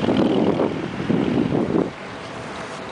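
Wind buffets outdoors in gusts.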